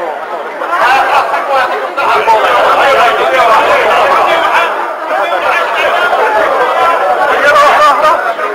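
A crowd of men talks loudly and all at once close by.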